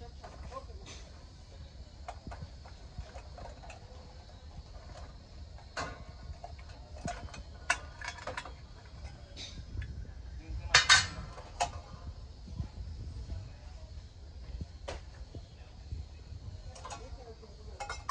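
Metal lids and stacked containers scrape and knock against each other.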